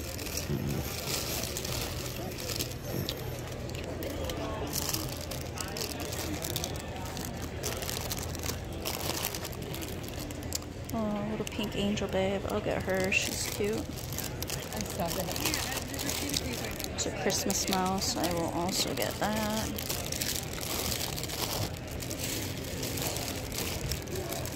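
Plastic bags crinkle and rustle as a hand sorts through them.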